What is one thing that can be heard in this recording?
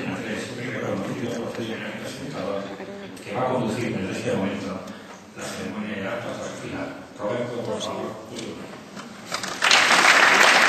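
A man speaks calmly into a microphone, echoing in a large hall.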